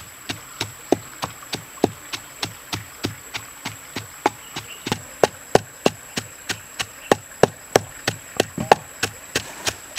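A wooden pestle pounds steadily in a wooden mortar with dull rhythmic thuds.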